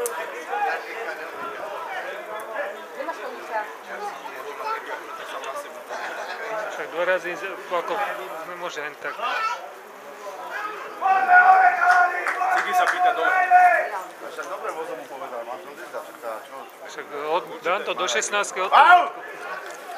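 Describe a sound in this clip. Men talk casually close by.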